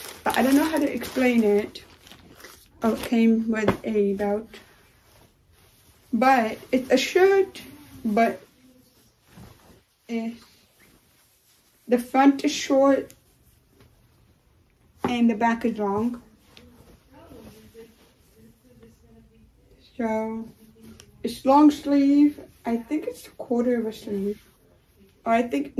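Fabric rustles as a dress is shaken out.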